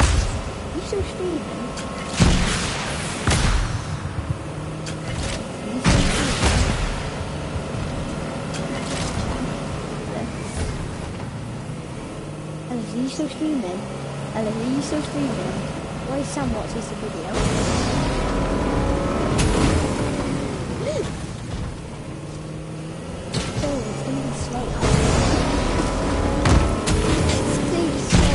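A video-game vehicle hums as it drives.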